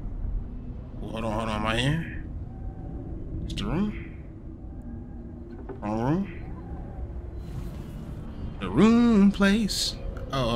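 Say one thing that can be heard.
A young man speaks in short, excited bursts close to a microphone.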